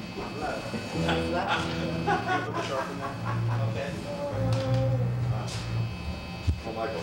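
A bass guitar plays low notes.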